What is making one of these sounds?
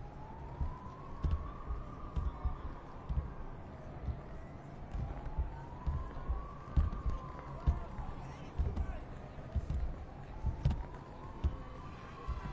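A siren wails in the distance, rising and falling.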